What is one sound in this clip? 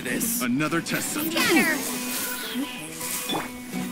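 A magical blast bursts with a bright shimmering sound.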